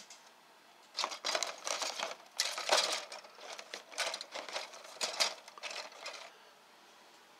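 Plastic model parts rattle and clatter against each other.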